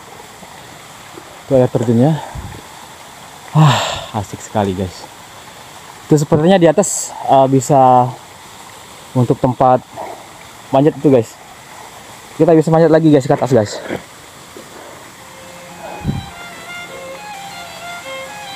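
Water splashes softly down a rocky waterfall.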